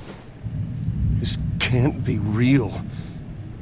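A young man speaks quietly in disbelief.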